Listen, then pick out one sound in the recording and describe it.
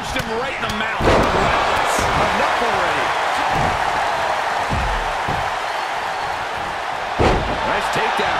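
Heavy thuds of bodies slam onto a wrestling mat.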